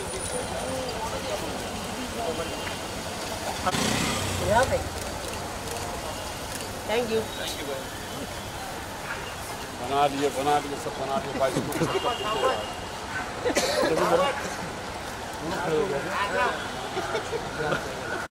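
Several young men talk and call out nearby outdoors.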